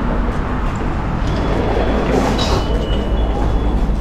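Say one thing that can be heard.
A glass door rattles open.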